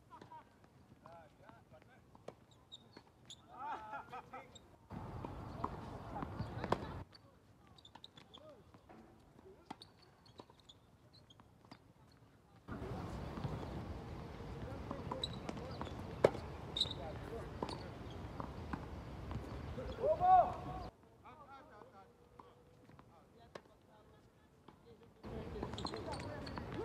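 Tennis balls are struck with rackets in a rally, with sharp pops at uneven intervals.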